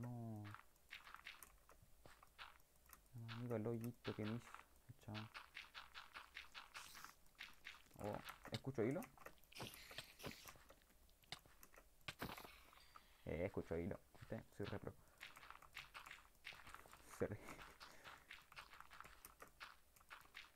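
Dirt crunches in quick repeated bursts as blocks are dug.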